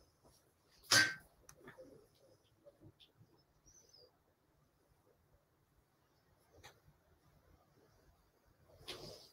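Fabric rustles and shifts under hands.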